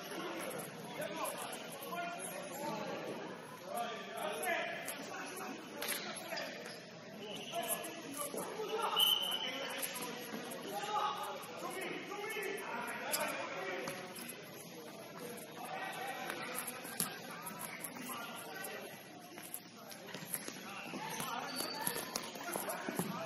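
Young players shout and call to each other in a large echoing hall.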